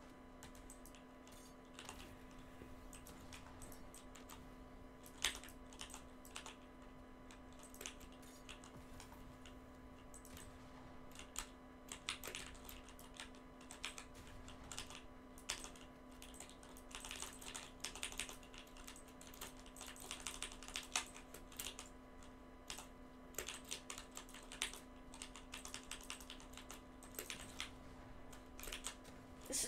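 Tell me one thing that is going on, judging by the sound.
Quick clicks and thuds of building pieces snap into place in rapid bursts.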